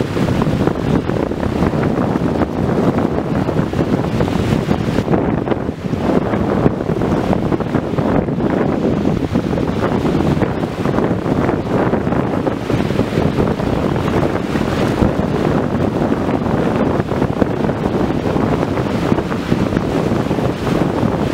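Wind blows outdoors and rumbles against the microphone.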